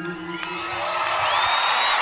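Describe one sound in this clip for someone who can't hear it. A band plays a final chord that rings out.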